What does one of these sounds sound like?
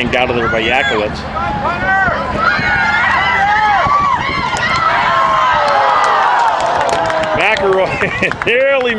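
A crowd of people cheers and shouts excitedly outdoors.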